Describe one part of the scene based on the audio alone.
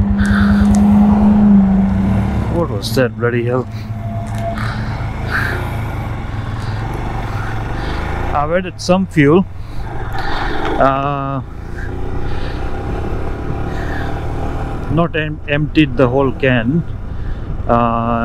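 A motorcycle engine idles with a low steady rumble.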